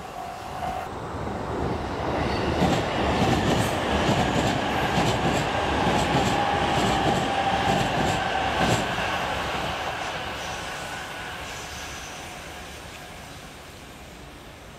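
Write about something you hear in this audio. A second train rumbles past in the distance and slowly fades away.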